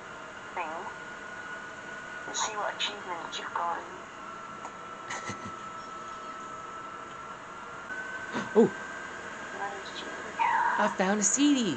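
Electronic game sounds play through a television speaker.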